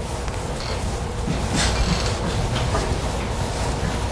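An eraser rubs across a chalkboard.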